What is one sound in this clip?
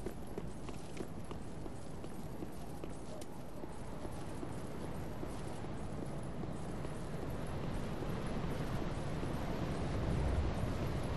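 Armoured footsteps run on stone.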